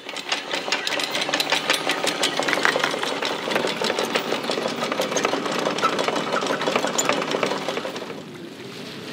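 An electric winch whirs steadily.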